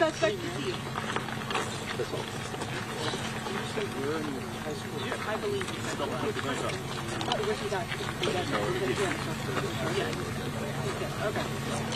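Several men and women talk quietly among themselves close by, outdoors.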